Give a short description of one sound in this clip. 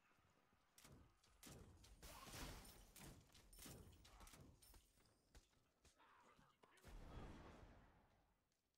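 Spell blasts and hits crackle in a video game.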